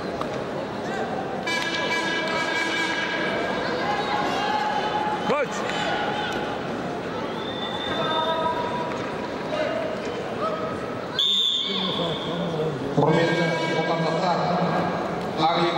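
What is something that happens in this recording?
A large crowd murmurs and calls out in a big echoing hall.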